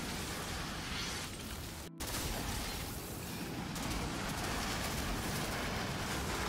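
Flames roar steadily from a flamethrower.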